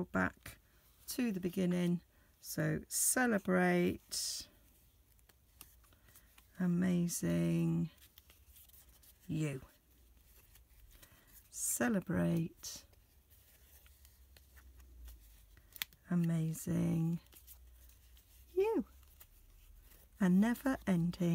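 A paper card rustles and flaps as it is folded open and shut.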